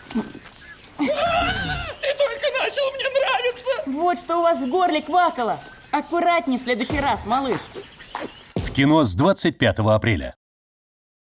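A young man speaks with animation, in a cartoonish voice.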